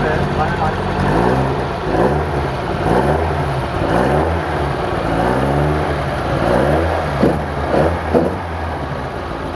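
A car engine revs up and down in repeated bursts.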